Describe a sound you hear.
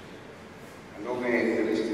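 An elderly man speaks calmly into a microphone over loudspeakers.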